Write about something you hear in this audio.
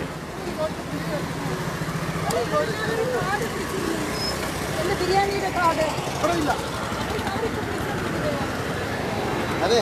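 Men and women talk at once nearby, outdoors.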